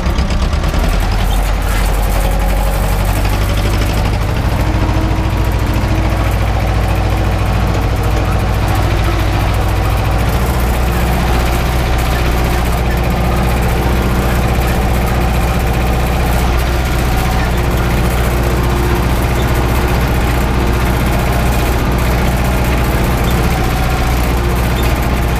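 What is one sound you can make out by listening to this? A tractor engine rumbles loudly and steadily up close.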